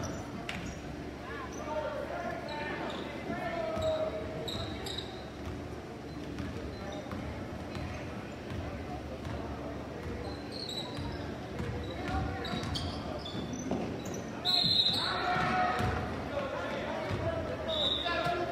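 Spectators cheer and shout in an echoing gym.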